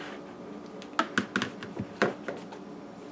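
A container knocks against a plastic bowl.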